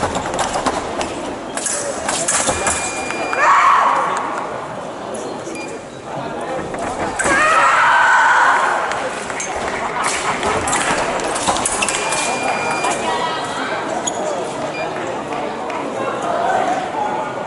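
Fencers' shoes squeak and thud on the floor.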